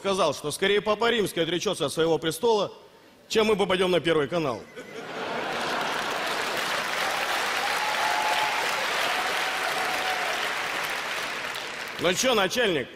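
A man announces loudly through a microphone in a large hall.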